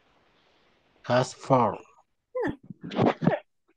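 A woman speaks through an online call.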